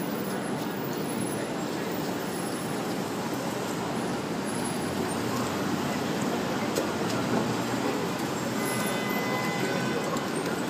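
Paper rustles and scrapes as it is dragged across a wet painted surface.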